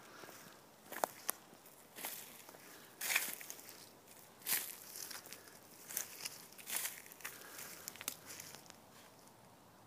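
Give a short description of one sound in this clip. A wooden log bumps and scrapes against the ground.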